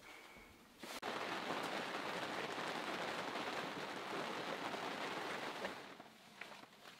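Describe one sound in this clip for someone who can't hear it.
Rain patters steadily on a window.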